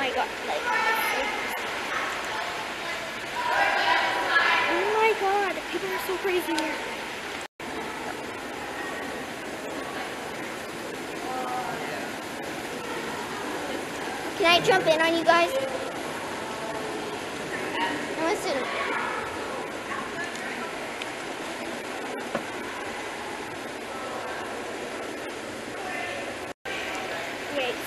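A young girl talks close to the microphone.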